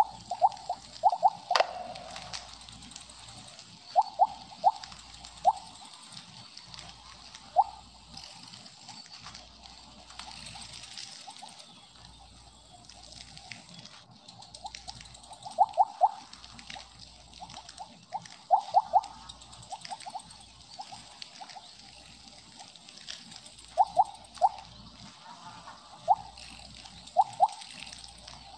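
Short bright electronic blips chime in quick bursts.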